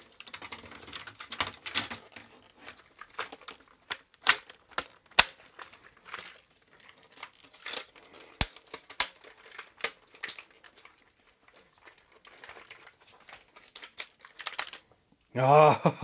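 Plastic casing parts click and knock as they are handled and fitted together.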